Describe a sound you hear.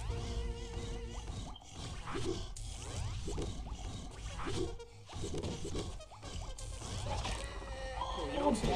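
Upbeat electronic game music plays throughout.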